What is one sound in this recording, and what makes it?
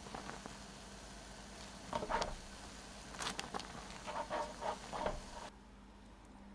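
Water bubbles at a boil in a pot.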